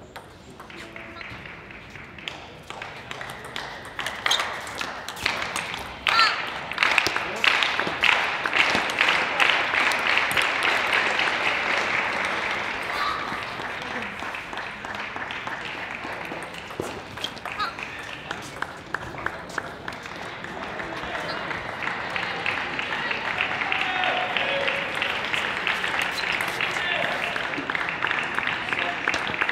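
A table tennis ball clicks back and forth, struck by paddles and bouncing on a table.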